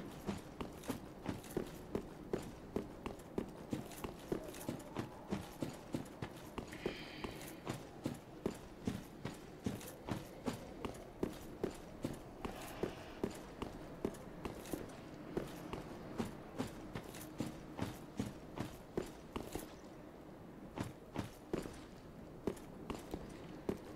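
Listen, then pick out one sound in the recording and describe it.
Armoured footsteps crunch quickly over stone and gravel.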